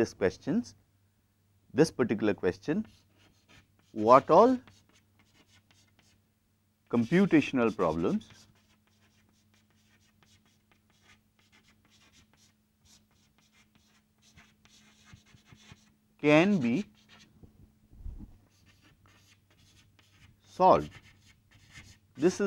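A man speaks calmly, close to a microphone, in short phrases.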